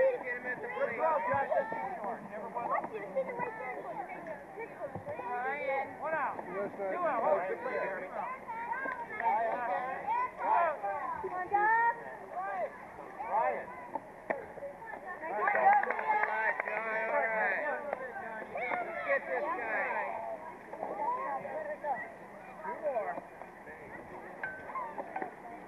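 Children and adults chatter and call out nearby, outdoors.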